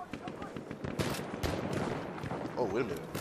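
A submachine gun fires short bursts.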